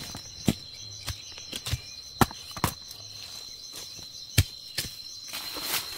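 A mango thuds into a woven basket.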